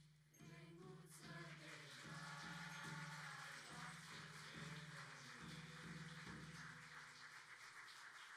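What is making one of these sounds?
A folk choir of women and men sings together on a stage, heard through loudspeakers.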